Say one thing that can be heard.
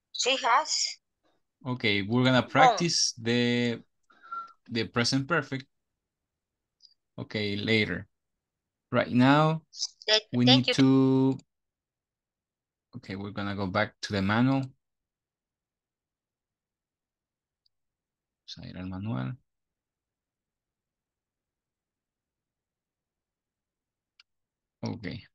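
A man speaks over an online call, in short bursts with pauses.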